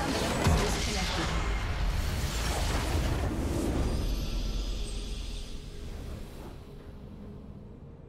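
A large crystal shatters in a loud, rumbling blast that slowly fades.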